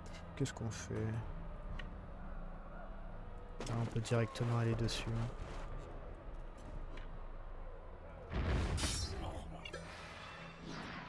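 Metal weapons clash and clang in a fight.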